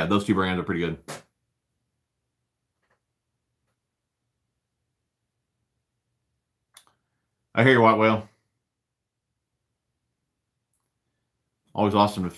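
A man speaks calmly, close to the microphone, in short bursts with long pauses.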